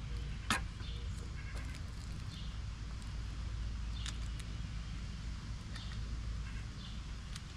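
Wood mulch rustles and crunches under a man's hands.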